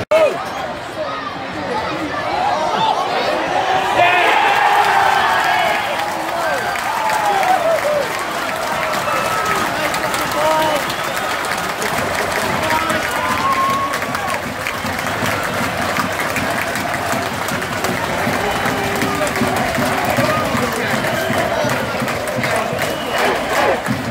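A large stadium crowd roars and cheers outdoors.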